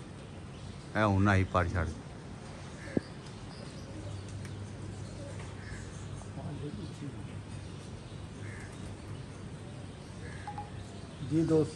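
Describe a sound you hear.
Pigeons coo nearby.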